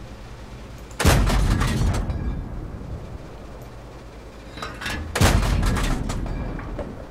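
A tank cannon fires with a loud boom that rumbles away.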